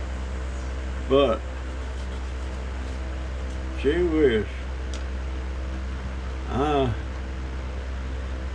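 Paper bills rustle softly as a man counts them.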